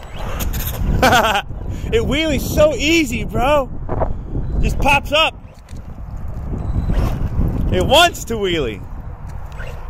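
A small electric toy car's motor whines, revving up and down as it drives on asphalt.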